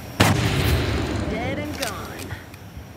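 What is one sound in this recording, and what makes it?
An explosion booms and crackles with scattered sparks.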